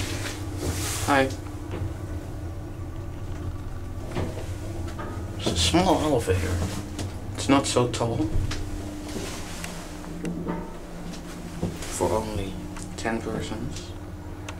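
A young man talks nearby in short bursts.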